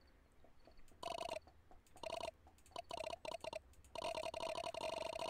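Short blips patter rapidly as a message types out.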